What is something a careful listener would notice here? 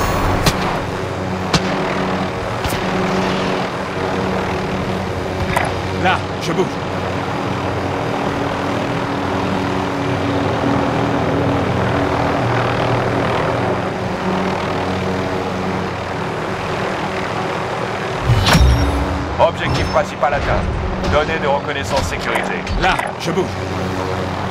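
A helicopter's engine and rotor drone steadily overhead.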